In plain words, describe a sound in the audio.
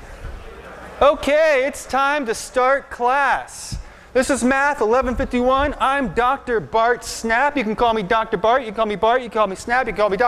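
A man lectures with animation into a microphone in a large echoing hall.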